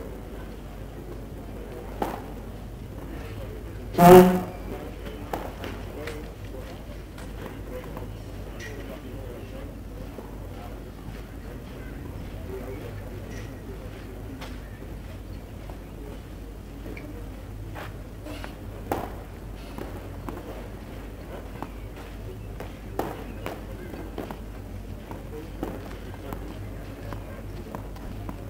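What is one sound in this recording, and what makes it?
A seated crowd murmurs quietly outdoors.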